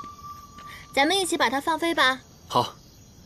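A young woman speaks brightly and with animation.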